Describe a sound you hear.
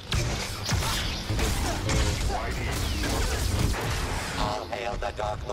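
Loud explosions boom and crackle.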